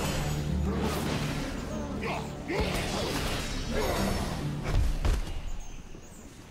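Game combat effects clash and crackle.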